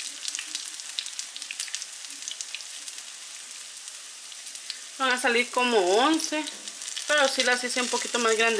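Oil sizzles and crackles in a frying pan.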